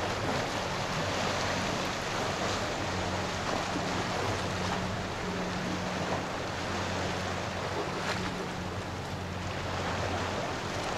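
Water laps gently against a sandbar.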